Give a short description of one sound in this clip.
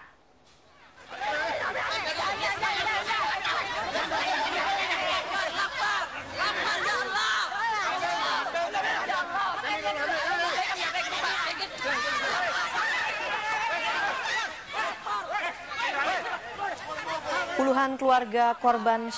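A crowd of men shouts in a loud, chaotic commotion.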